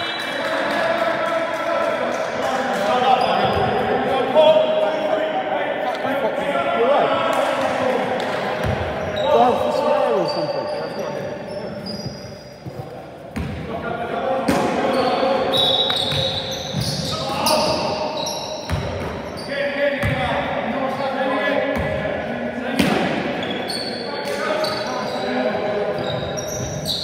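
A basketball bounces on the floor with hollow thuds.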